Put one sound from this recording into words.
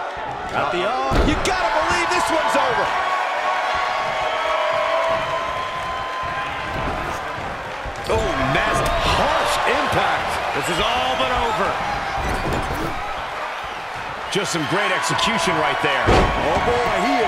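Heavy blows land on bodies with dull thuds.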